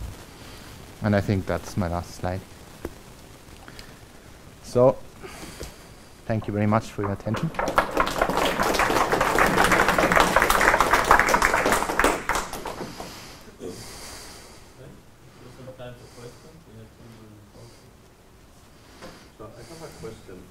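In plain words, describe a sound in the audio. A man speaks to an audience.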